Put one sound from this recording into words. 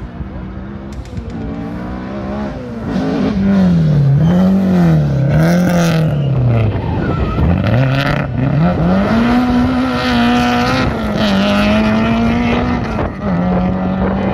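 A rally car engine roars and revs up and down as the car speeds past.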